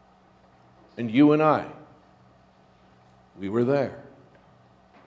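A middle-aged man speaks slowly and solemnly in a large echoing hall, in short phrases with long pauses.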